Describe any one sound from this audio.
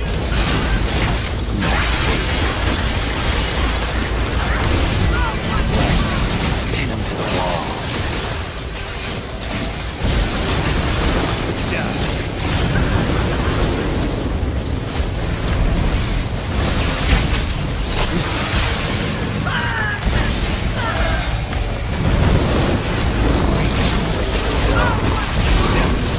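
Swords slash and clang in quick bursts.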